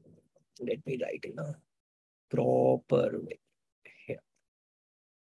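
A man speaks calmly and clearly into a close microphone, explaining in short phrases.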